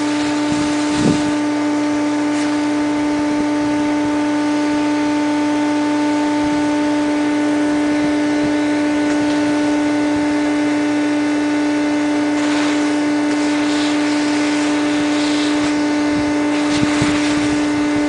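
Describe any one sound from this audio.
A plastic pole knocks against a gutter.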